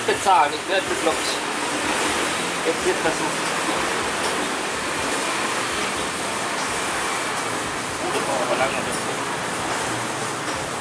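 An electric fan whirs steadily close by.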